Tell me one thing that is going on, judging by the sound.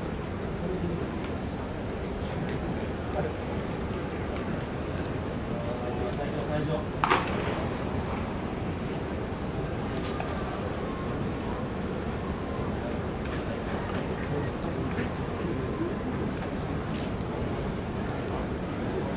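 A crowd murmurs steadily in a large echoing stadium.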